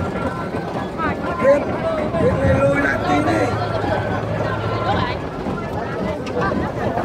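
A crowd of men and women chatter loudly all around, outdoors.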